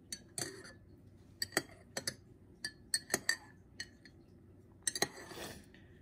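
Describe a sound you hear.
A metal spoon clinks against the inside of a ceramic mug.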